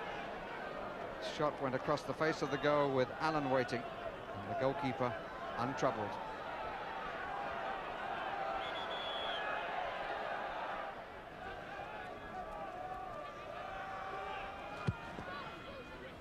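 A large crowd cheers and roars in an open stadium.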